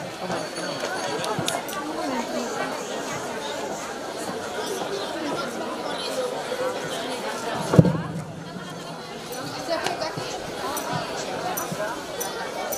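A group of young men sings together through microphones and loudspeakers outdoors.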